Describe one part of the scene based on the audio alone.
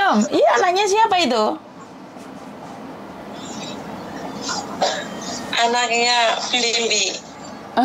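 A woman speaks calmly and cheerfully into a nearby microphone, as if on an online call.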